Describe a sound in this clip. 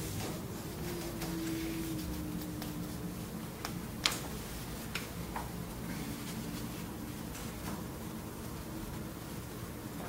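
Paper rustles and crinkles in a man's hands.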